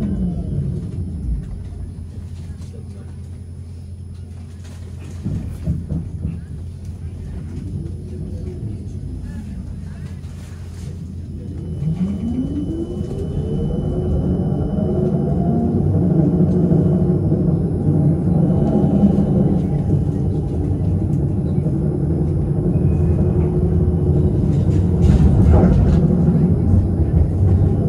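A tram rumbles along its rails.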